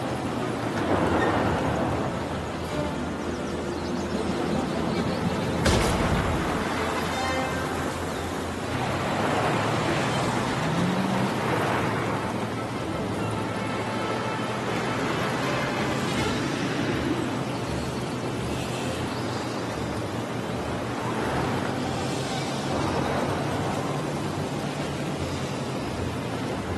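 Tyres rumble and crunch over loose gravel.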